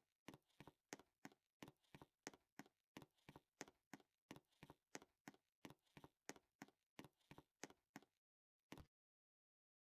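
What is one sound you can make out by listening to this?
Footsteps tap quickly and softly in an even rhythm.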